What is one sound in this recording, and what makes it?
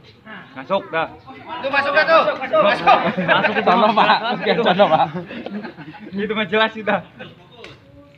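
A man laughs and talks loudly close by.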